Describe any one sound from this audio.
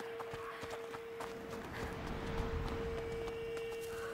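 Footsteps crunch on dirt and leaves.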